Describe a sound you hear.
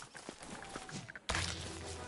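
A cartoonish spider creature hisses and thuds in a brief fight.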